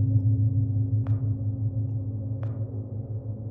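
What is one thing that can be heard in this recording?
A lighter clicks twice, sparking without catching.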